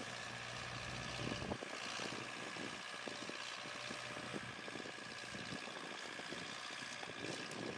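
A disc plough rattles over the soil.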